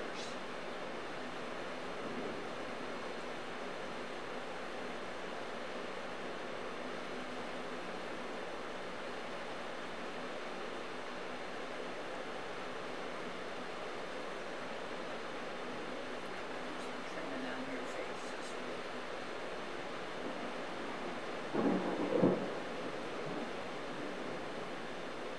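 Heavy rain pours steadily outdoors.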